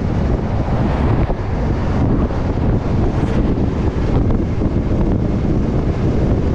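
A vehicle's engine hums steadily on the road.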